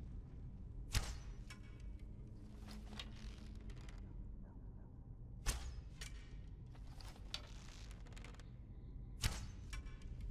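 A bowstring snaps as arrows are loosed, one after another.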